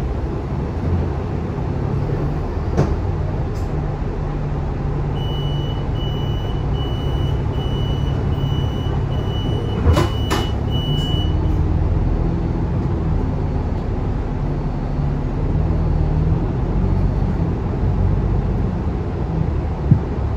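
A bus rattles and shakes as it moves through traffic.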